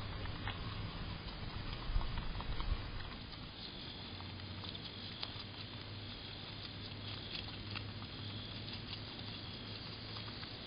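A groundhog chews food with soft crunching close by.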